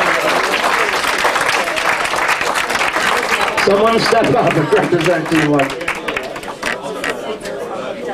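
A crowd chatters and laughs loudly indoors.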